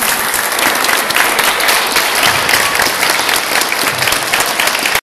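A large crowd claps loudly and steadily in an echoing hall.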